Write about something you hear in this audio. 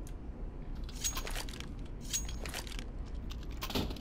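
A pistol is handled with light metallic clicks.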